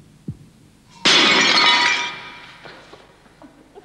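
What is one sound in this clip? A clay pot smashes on a stone floor.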